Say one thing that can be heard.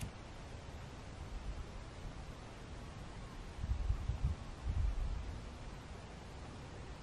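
Wind blows in low gusts outdoors.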